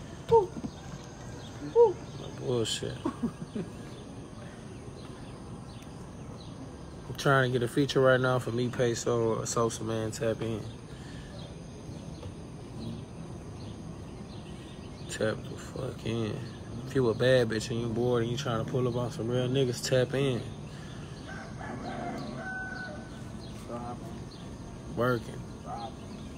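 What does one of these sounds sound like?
A man talks casually into a phone microphone, close by.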